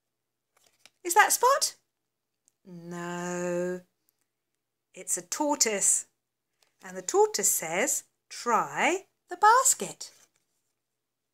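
A woman reads aloud expressively, close by.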